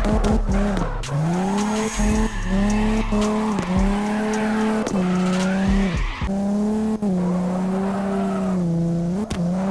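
A car engine revs hard, rising and dropping in pitch with quick gear changes.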